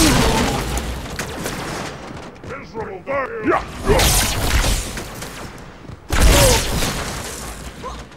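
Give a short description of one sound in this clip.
An energy sword swings and slashes with a sharp electric whoosh.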